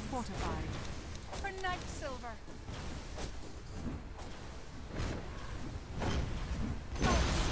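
Magic spells whoosh and crackle in bursts.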